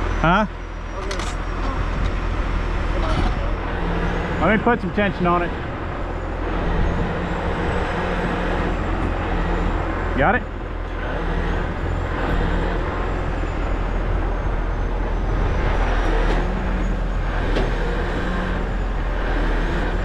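A heavy truck engine idles with a steady low rumble.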